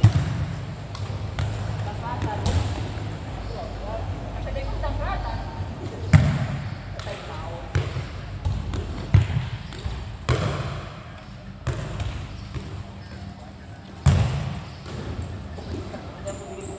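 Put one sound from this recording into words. A ball thuds as players kick it, echoing in a large hall.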